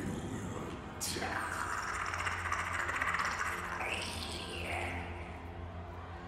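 A creature growls and hisses.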